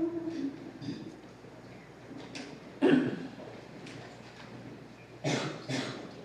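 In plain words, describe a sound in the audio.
Women chant in short phrases, echoing in a large hall.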